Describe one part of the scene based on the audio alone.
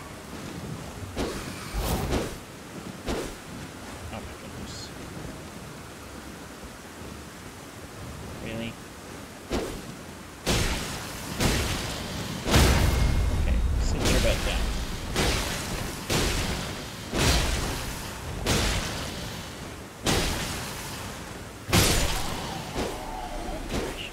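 Heavy sword blows strike and clang.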